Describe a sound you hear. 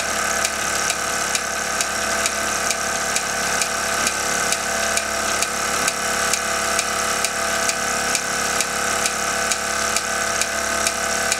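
Belts and pulleys on a small lineshaft whir.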